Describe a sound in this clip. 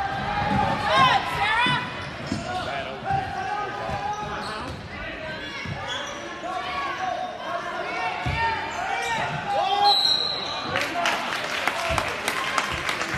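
Sneakers squeak sharply on a hardwood court, over and over.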